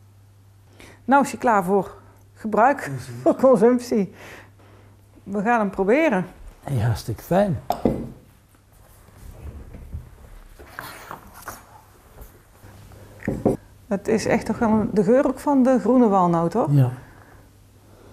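A middle-aged woman speaks calmly close by.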